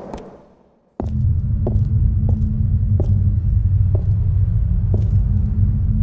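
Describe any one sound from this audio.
Armoured footsteps thud on stone.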